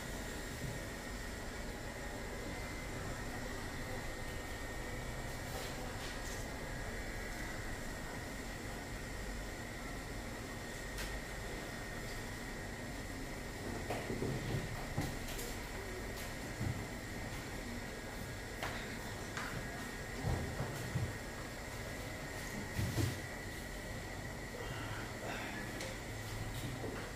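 A razor scrapes softly across a man's face.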